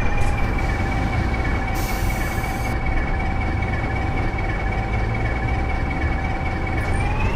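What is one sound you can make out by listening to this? A bus engine idles with a steady low hum and whine.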